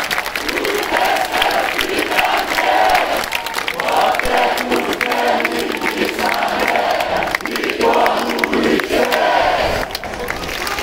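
A large outdoor crowd chants loudly in unison.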